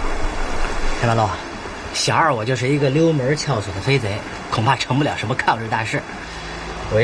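A man speaks.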